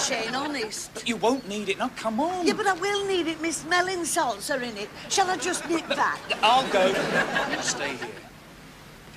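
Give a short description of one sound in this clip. An elderly woman speaks agitatedly, close by.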